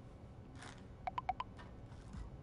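A phone chimes with short message tones.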